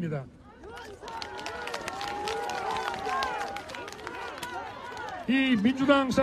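Hands clap in lively applause.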